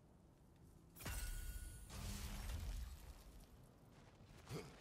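A magical burst crackles and shimmers.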